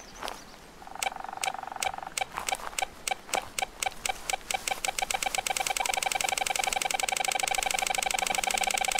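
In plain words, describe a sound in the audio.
A metal detector beeps, faster and faster until it becomes a steady tone.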